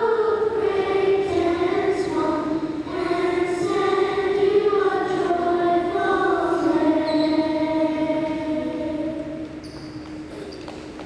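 A group of children sing together in a large echoing hall.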